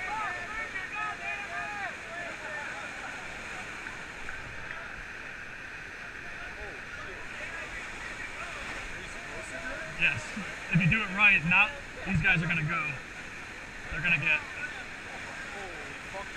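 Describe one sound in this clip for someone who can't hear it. White-water rapids rush and roar steadily nearby.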